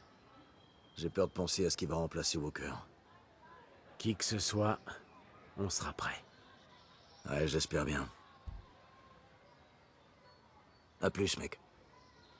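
A man speaks calmly and low, close by.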